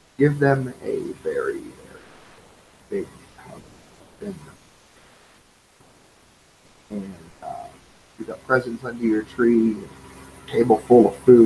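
A man talks calmly in short phrases, heard close through a computer microphone.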